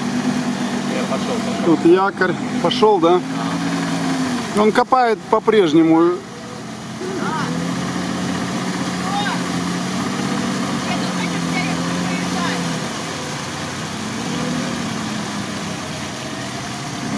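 Tyres squelch and splash through muddy water.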